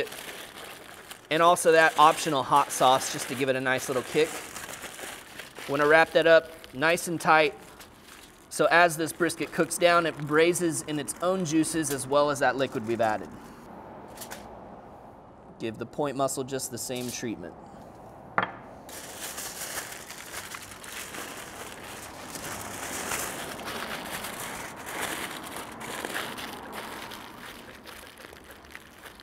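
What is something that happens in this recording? Aluminium foil crinkles and rustles as it is folded and pressed.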